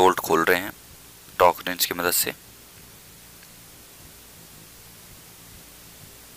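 Oil trickles in a thin stream into a bucket.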